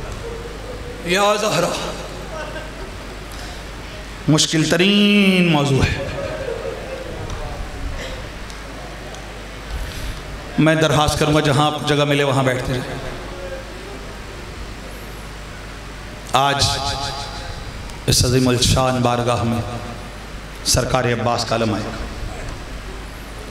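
A man recites loudly and with emotion into a microphone, in bursts, heard through loudspeakers in an echoing hall.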